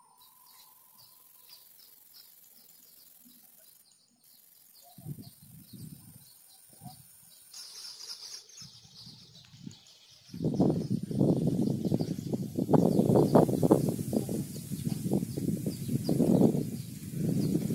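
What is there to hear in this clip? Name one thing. Tall grass rustles in the wind.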